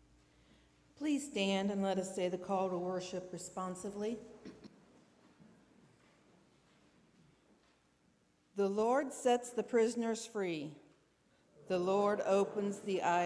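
An elderly woman reads aloud calmly through a microphone in a large echoing hall.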